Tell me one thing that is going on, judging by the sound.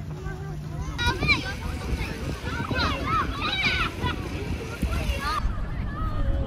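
Children shout and squeal playfully in the distance.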